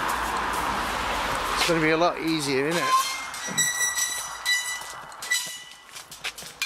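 A metal gate clanks and rattles.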